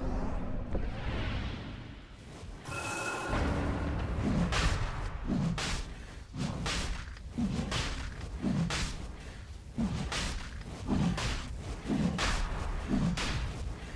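Game spell effects crackle and burst in quick succession.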